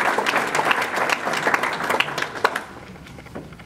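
An audience applauds loudly, then the applause dies away.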